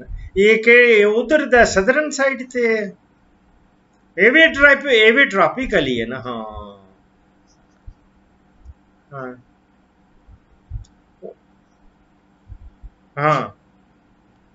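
A middle-aged man speaks calmly and close, heard through an online call microphone.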